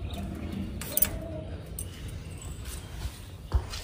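A metal door swings open with a clank.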